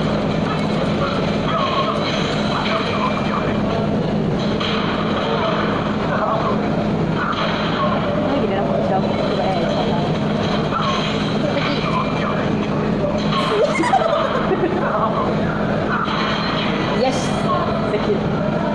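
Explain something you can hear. Punches and kicks thud and smack from a fighting game through a television speaker.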